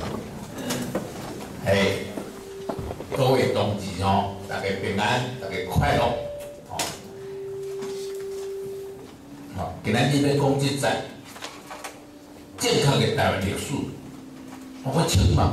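An elderly man speaks through a microphone over loudspeakers in an echoing hall.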